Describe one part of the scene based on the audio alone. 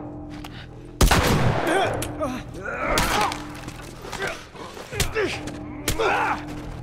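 Heavy blows land in a close fight.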